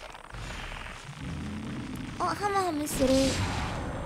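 A blade slashes into a large creature.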